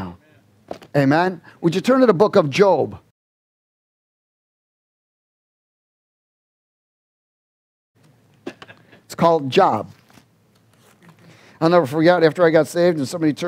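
A man speaks calmly into a headset microphone, pausing between phrases.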